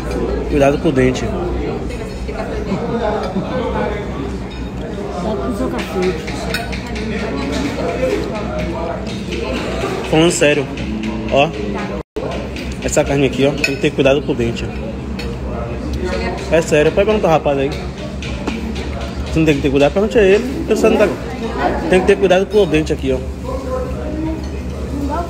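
A middle-aged woman talks casually close by.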